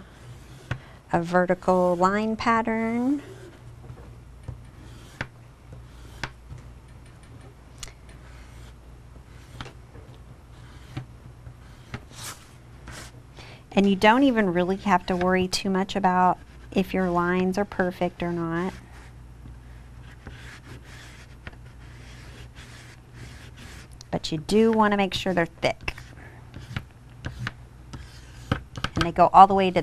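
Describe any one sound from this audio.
A pastel scratches softly across paper.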